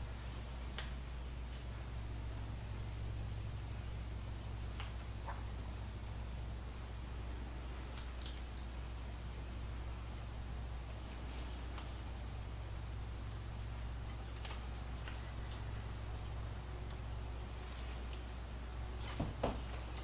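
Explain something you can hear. A spoon clinks lightly against a bowl.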